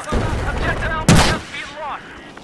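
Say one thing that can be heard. A rifle fires a single loud, sharp shot.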